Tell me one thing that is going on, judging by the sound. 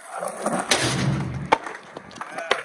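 A skateboard clatters onto the ground.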